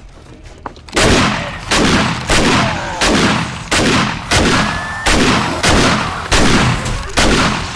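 A gun fires rapid, loud shots in quick succession.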